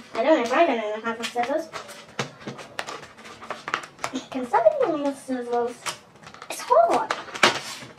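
Paper crinkles and rustles in a young girl's hands.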